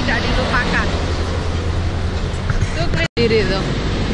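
A woman talks close by with animation.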